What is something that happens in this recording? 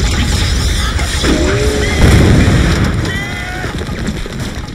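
Men shout loudly as they charge.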